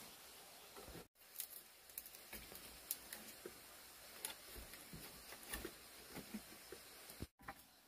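Dry leaves rustle as hands tie a binding around a bamboo post.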